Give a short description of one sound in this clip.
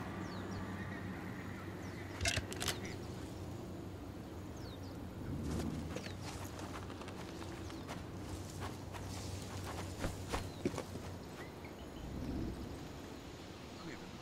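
Footsteps crunch on dry gravel.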